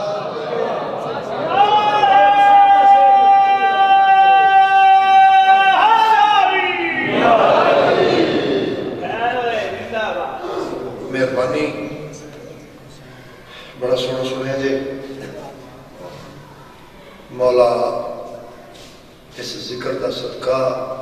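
A man chants loudly and melodiously through a microphone, his voice echoing in a hall.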